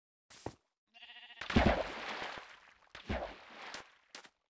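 Blocks crunch as they are broken in a game.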